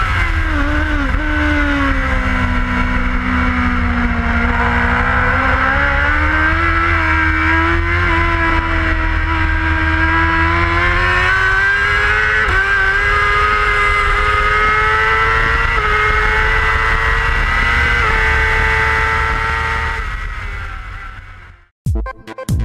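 A motorcycle engine roars loudly at high revs, rising in pitch and dropping briefly with each gear change.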